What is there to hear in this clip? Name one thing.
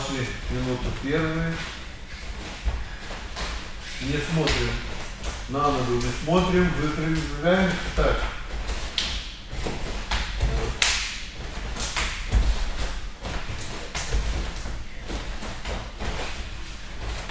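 Bare feet shuffle and thump on a soft mat.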